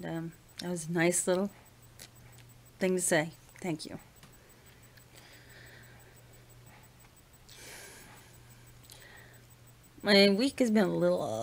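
A middle-aged woman talks close to a microphone, with pauses.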